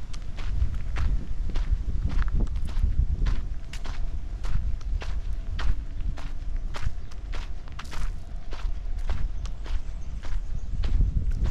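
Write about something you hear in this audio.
Footsteps crunch steadily on a dry dirt path.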